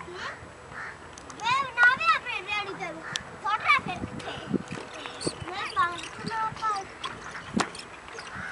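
Children's voices call out nearby.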